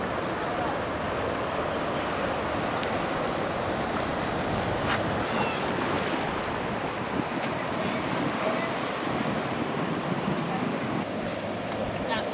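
Small waves lap against rocks, with a steady rush of surf outdoors.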